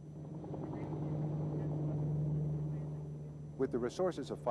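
A helicopter drones overhead.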